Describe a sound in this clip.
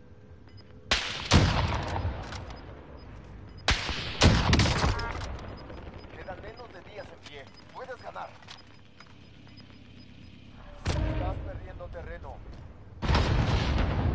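A sniper rifle fires loud, booming shots.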